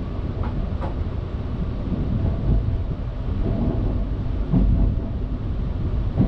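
Train wheels clatter over rail joints and points.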